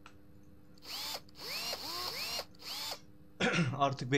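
An impact wrench whirs in short bursts on wheel nuts.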